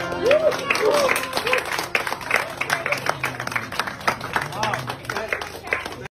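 A crowd claps along in rhythm.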